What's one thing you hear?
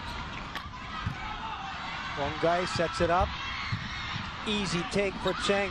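A volleyball is struck hard with a sharp slap.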